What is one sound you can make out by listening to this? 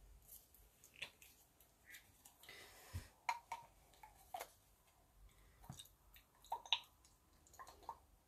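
A plastic bottle cap clicks and twists open.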